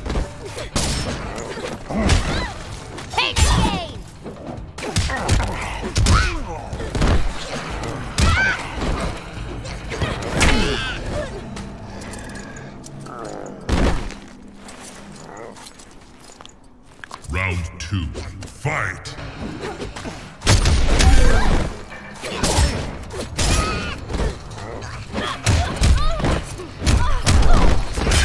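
Heavy punches and kicks land with loud thuds and cracks.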